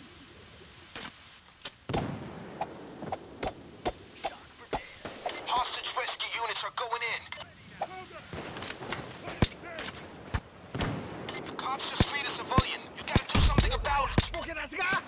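Gunshots crack sharply, one after another.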